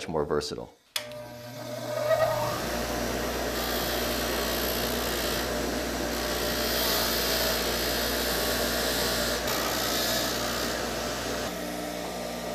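A bench grinder motor hums steadily.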